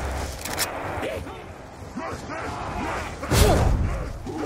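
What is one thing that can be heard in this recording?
A zombie growls and snarls.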